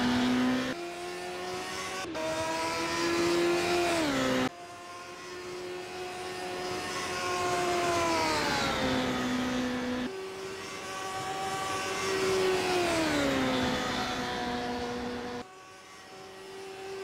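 A racing car engine whines at high revs, dropping in pitch as it shifts down and rising again.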